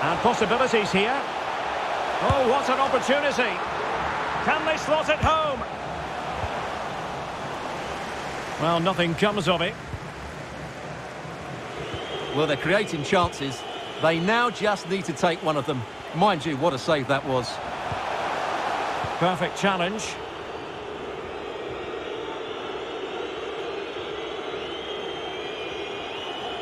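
A large stadium crowd murmurs and cheers steadily in the background.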